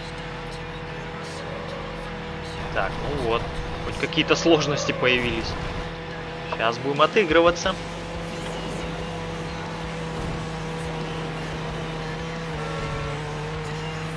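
A car engine hums steadily in a racing game.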